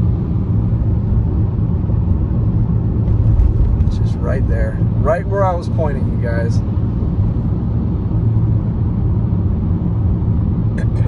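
A car drives steadily along a road, with a low rumble of tyres and engine heard from inside.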